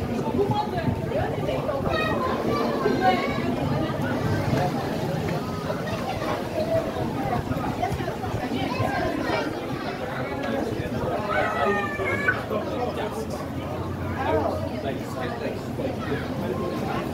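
A crowd of men and women chatter all around, close by.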